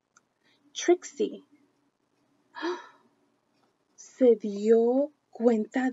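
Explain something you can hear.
A woman reads aloud expressively, close to the microphone.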